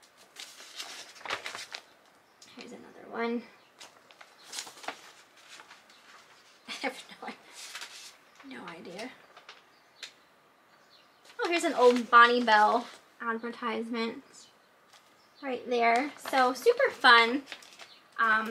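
Magazine pages rustle and crinkle as they are turned.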